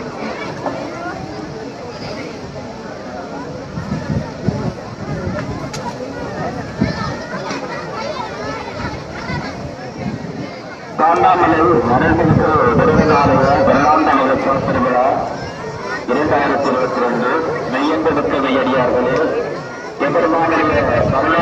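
A crowd of men and women chatter as they walk, outdoors.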